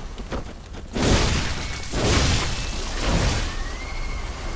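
Heavy weapons swing and strike in loud bursts.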